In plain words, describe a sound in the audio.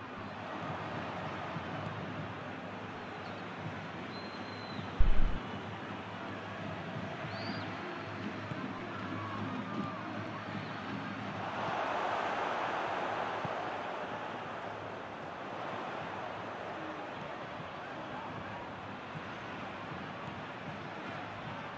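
A stadium crowd roars steadily, swelling louder for a few seconds.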